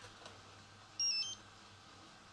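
A radio controller beeps in short high tones.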